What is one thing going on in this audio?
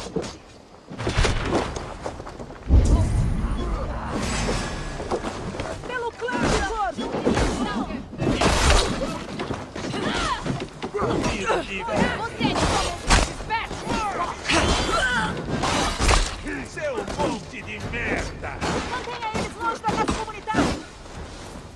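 Blades clash and thud in rapid blows.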